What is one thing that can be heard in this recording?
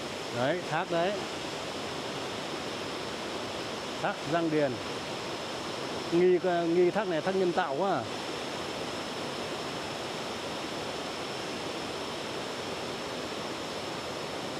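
A waterfall rushes steadily in the distance, outdoors.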